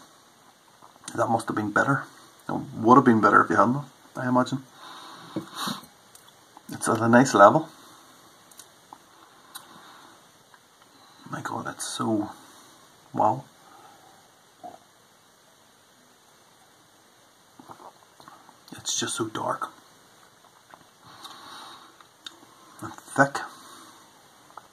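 A man talks calmly and close to a microphone, pausing often.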